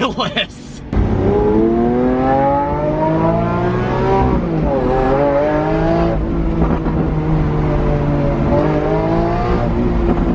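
A car engine roars and rises in pitch as it speeds up, then drops briefly at a gear change.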